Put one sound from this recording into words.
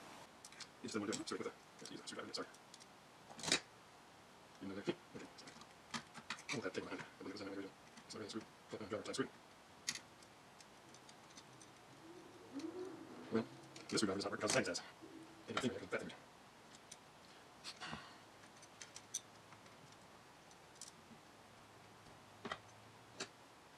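Small metal parts and wires click and rattle as they are handled.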